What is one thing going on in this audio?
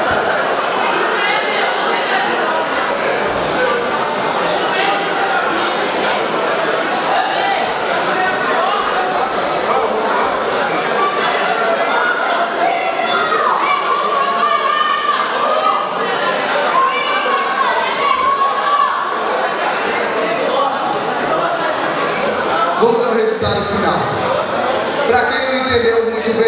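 A large crowd chatters and cheers loudly in an echoing hall.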